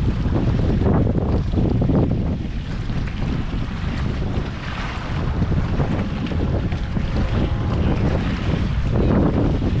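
Wind blows hard across open water.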